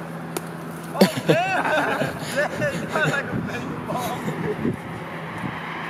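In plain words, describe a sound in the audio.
Young men shout and laugh playfully outdoors, some distance away.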